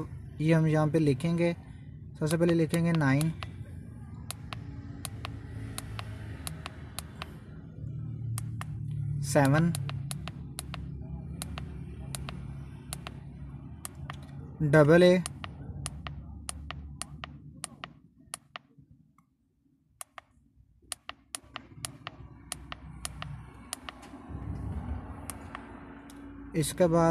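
Small plastic buttons click, one press at a time.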